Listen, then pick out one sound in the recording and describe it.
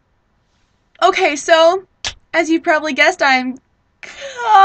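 A young woman speaks close to a microphone, with animation.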